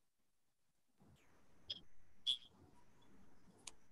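A man speaks quietly over an online call.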